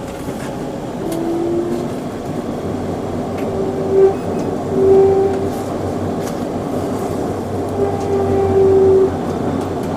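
Train wheels squeal on the rails now and then.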